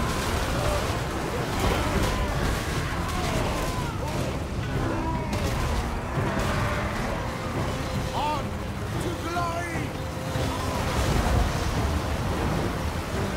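Weapons clash in a large battle.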